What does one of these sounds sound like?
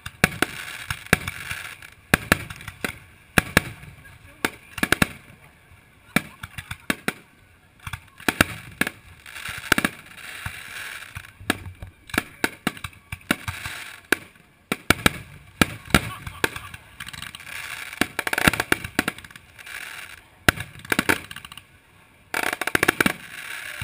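Fireworks crackle and fizzle after the bursts.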